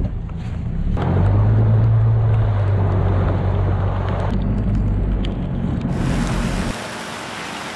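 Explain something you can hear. Water rushes and splashes against a boat hull.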